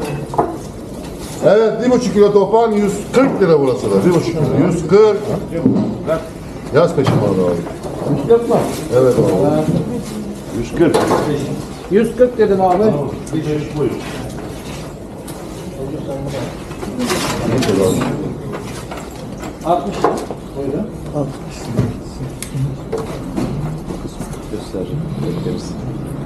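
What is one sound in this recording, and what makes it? An adult man speaks loudly and with animation, close by.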